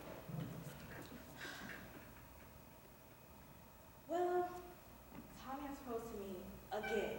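A young woman speaks expressively, heard from a distance in a large echoing hall.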